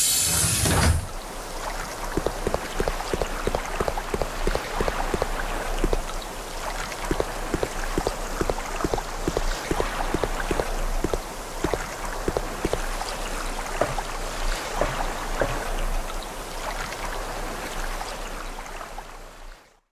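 Footsteps tap quickly on a hard floor and up metal stairs.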